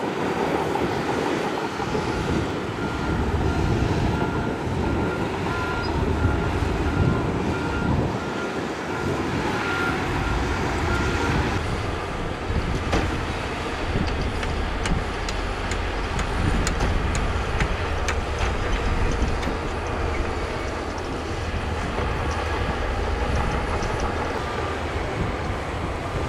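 A wheel loader's diesel engine rumbles steadily nearby.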